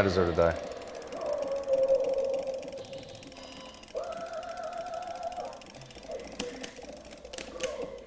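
Video game music plays.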